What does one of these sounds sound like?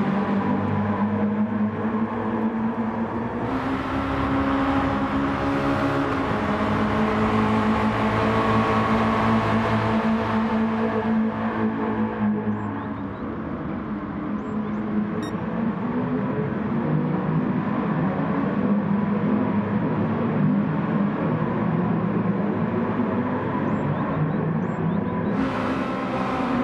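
A racing car engine roars loudly and changes pitch as it shifts gears.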